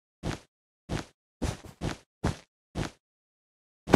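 Blocks are placed with short, soft thuds in a quick series.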